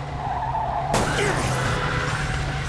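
A car crashes into other cars with a loud crunch.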